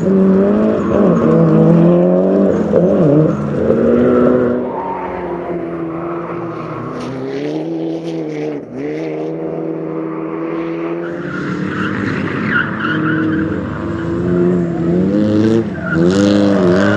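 A rally car engine revs hard, rising and falling in pitch.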